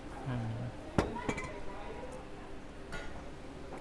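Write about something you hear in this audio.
A spoon clinks against a glass.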